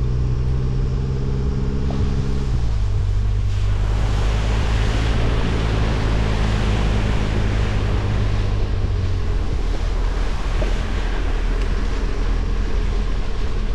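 Tyres crunch over dry leaves and dirt.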